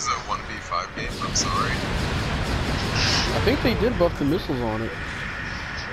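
A heavy cannon fires with a loud blast.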